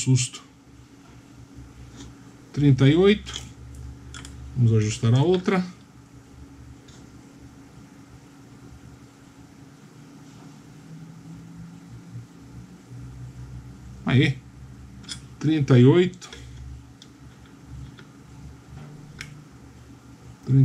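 Metal test probes tap and click lightly against a circuit board.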